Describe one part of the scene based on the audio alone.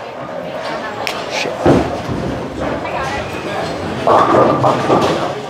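Bowling balls roll and pins clatter in the distance.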